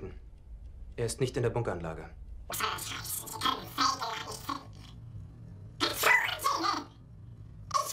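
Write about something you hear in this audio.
An elderly man speaks, growing angry.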